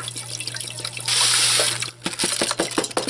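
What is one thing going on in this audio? Dry rice pours and rattles into a metal pot.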